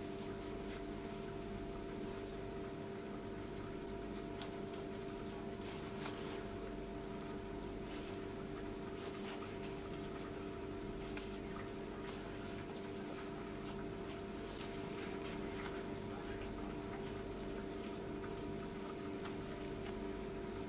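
Soft bread tears apart with faint crackling of crust.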